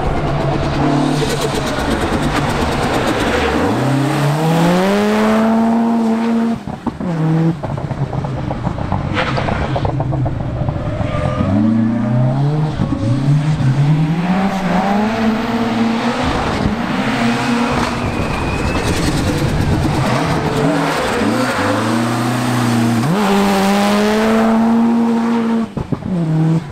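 A racing car engine revs hard close by, rising and falling in pitch with each gear change.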